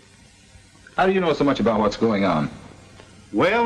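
A man speaks sharply, close by.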